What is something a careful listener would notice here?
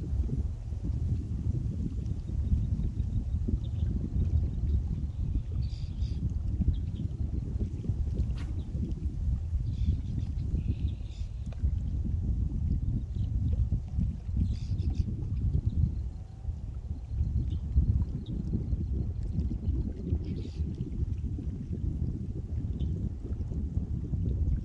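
Small waves lap against the shore.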